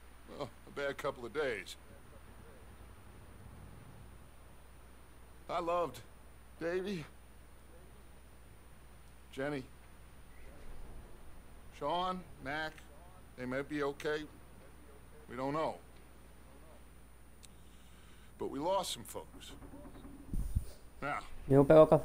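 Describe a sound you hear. A man speaks slowly and quietly in short phrases.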